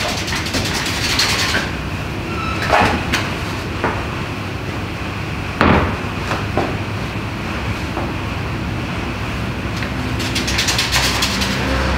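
Footsteps knock on a wooden stage floor.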